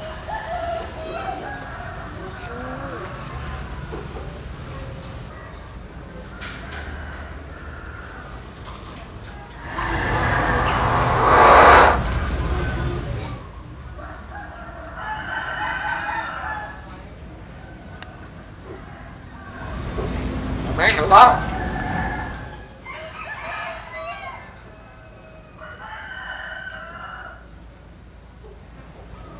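A caged mynah bird calls and chatters loudly in bursts.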